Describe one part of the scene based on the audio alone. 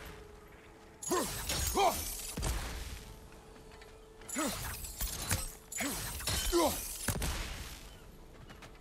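Footsteps crunch on leaves and earth.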